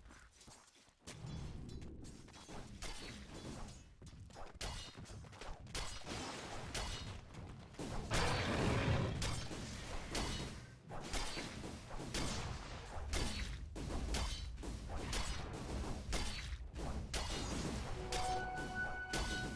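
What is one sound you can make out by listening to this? Sharp hits and magic blasts crackle as fantasy creatures fight.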